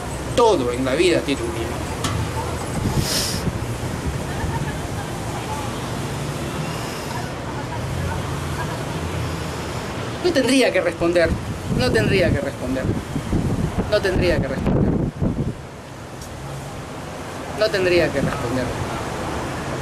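A middle-aged man speaks close up, with a serious tone.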